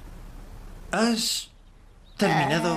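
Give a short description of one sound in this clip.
A young woman speaks briefly and quietly.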